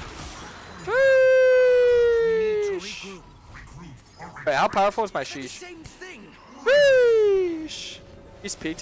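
A young man shouts loudly in excitement.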